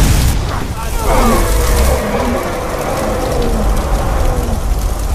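A fire spell crackles and hisses steadily.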